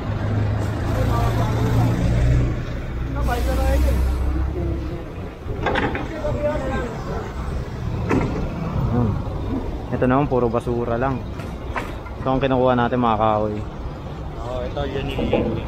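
Men toss debris onto a truck with thuds and rustles.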